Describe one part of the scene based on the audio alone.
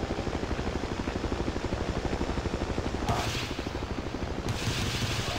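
A helicopter's rotor thumps rapidly and steadily.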